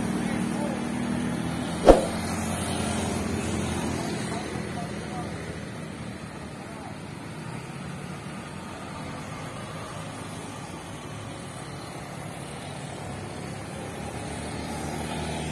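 Motorcycles buzz past.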